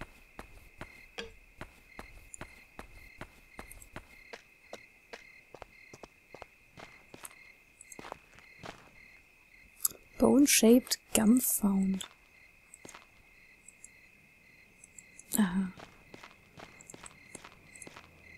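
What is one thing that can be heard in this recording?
Footsteps tap steadily across hard ground.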